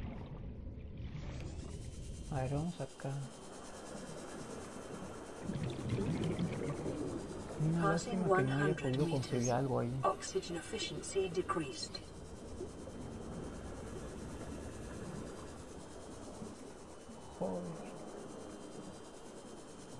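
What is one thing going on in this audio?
A small submarine's motor hums steadily underwater.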